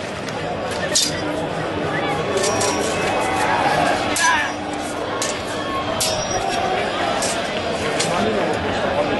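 Wooden staffs clack sharply together in a fight.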